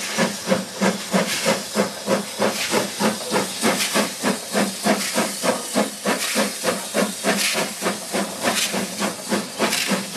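Steam hisses from a locomotive's cylinders.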